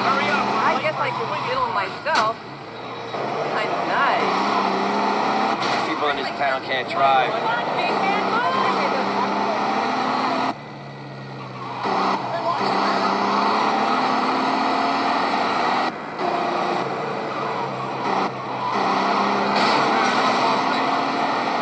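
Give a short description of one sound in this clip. A car engine revs and hums steadily.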